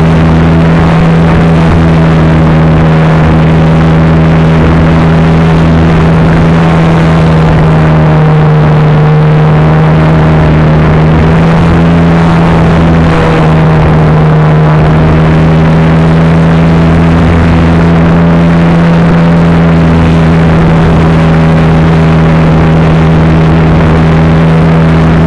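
A small aircraft motor drones loudly and steadily up close.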